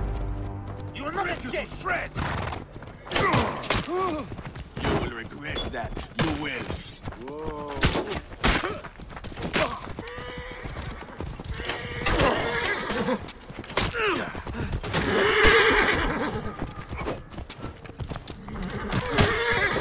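Horses neigh and whinny.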